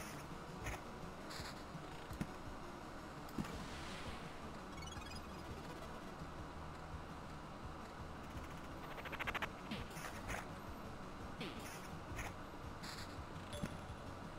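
Game characters clash in combat with short hits and clicks.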